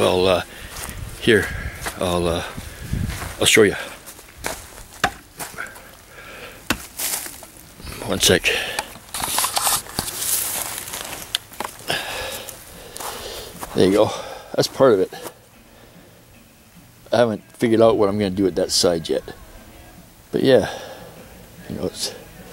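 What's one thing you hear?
An older man talks calmly, close to the microphone.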